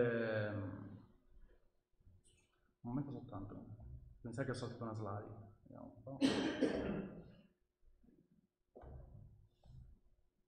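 A man speaks calmly, giving a talk.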